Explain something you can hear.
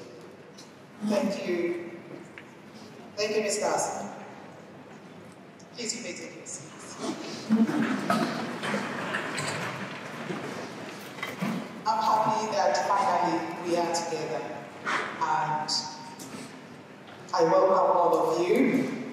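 A woman speaks through a microphone and loudspeakers in a large echoing hall.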